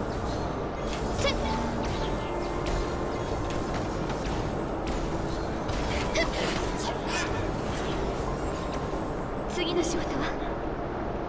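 Magical blasts and sparkling impacts crackle in a video game battle.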